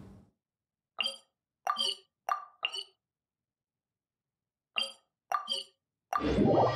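Short menu chimes click one after another.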